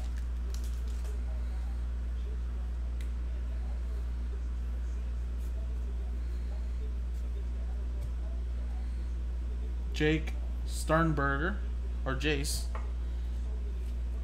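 Cards rustle and slide against each other.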